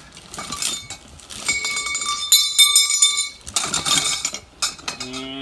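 Plastic hangers clatter and rattle as they are pushed aside.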